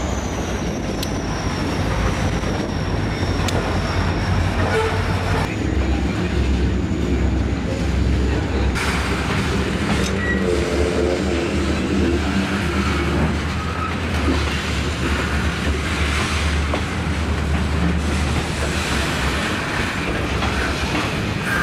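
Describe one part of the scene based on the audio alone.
A diesel locomotive engine drones low and steady.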